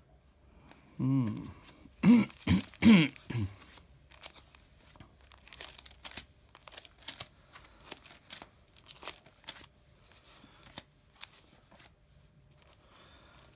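Plastic sleeves crinkle and rustle as envelopes are leafed through by hand.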